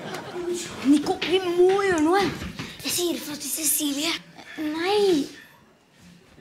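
A boy speaks urgently.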